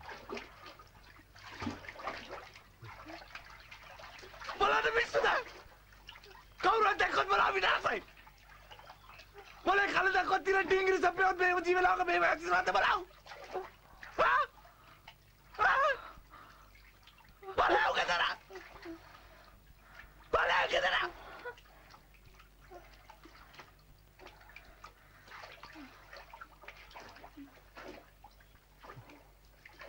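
Water laps and splashes gently around people wading.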